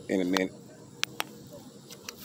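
A metal pole taps against a turtle's shell.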